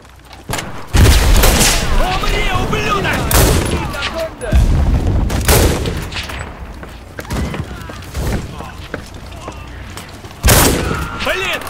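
A rifle fires loudly several times, with sharp echoing shots.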